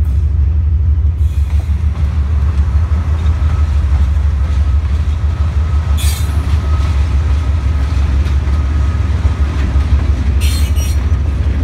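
A diesel train rumbles slowly past nearby.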